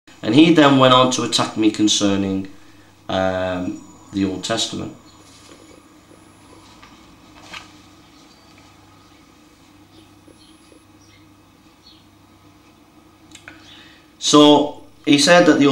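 A middle-aged man speaks calmly and close by, pausing now and then.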